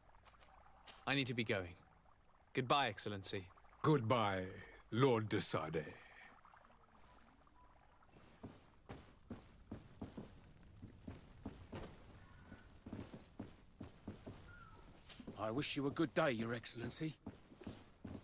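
A younger man speaks calmly.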